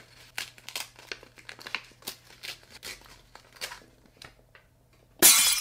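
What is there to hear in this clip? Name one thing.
Paper crinkles and rustles in hands.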